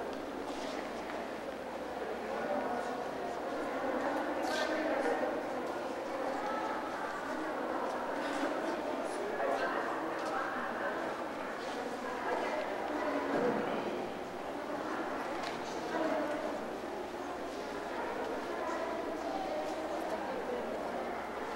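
A crowd of people chatters throughout in a large echoing hall.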